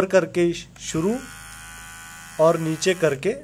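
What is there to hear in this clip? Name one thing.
An electric hair trimmer buzzes steadily.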